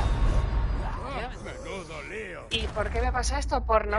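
A heavy axe strikes a body with a thud.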